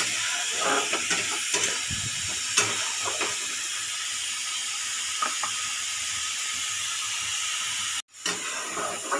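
Batter sizzles and crackles in a hot pan.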